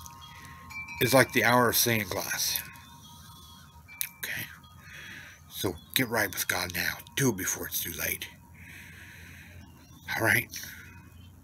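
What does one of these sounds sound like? A middle-aged man speaks with animation, close up.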